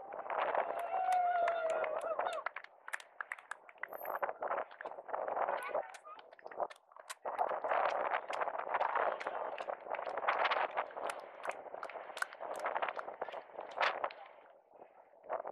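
A crowd of spectators cheers and shouts from the roadside.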